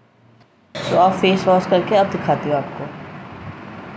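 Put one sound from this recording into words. A woman speaks close up, in a strained, wavering voice.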